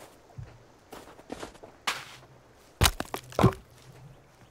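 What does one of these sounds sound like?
Heavy thuds and knocks sound on wooden logs.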